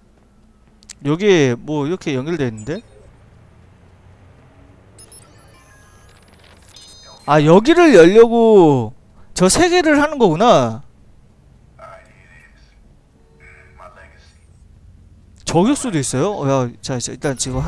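A man speaks calmly over a phone line.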